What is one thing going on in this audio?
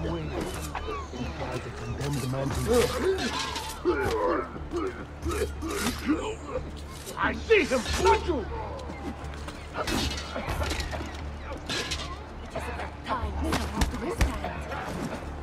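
Swords clash and clang repeatedly in a fight.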